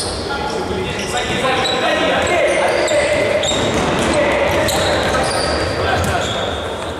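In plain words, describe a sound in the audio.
Sneakers squeak sharply on a hard indoor court, echoing in a large hall.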